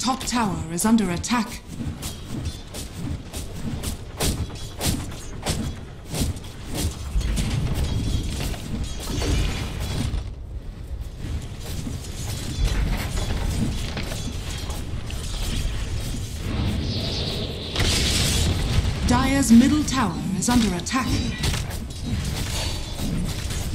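Magic blasts and weapon hits crackle and thump in a fast fight.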